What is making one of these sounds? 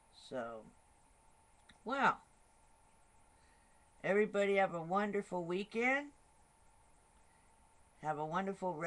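A woman speaks calmly and close to a microphone, in short bursts with pauses.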